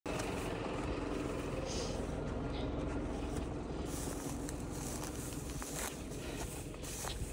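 Tyres crunch over dirt and gravel.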